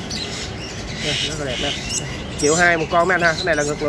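A small bird chirps close by.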